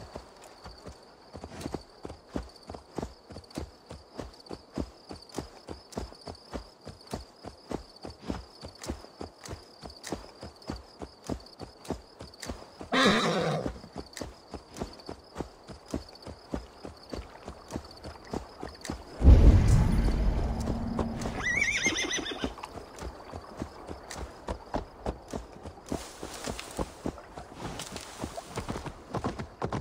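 Horse hooves thud steadily on soft ground at a trot.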